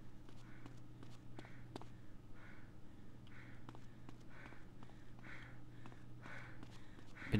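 Footsteps slap quickly on a hard floor.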